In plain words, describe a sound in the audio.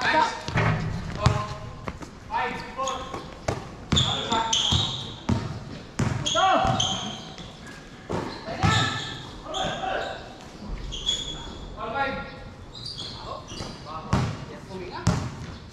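Young men shout and call out to each other during a game.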